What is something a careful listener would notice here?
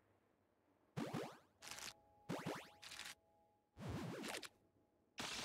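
An egg cracks in several sharp bursts.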